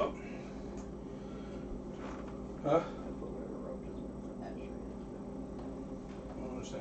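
A pot of soup simmers and bubbles gently.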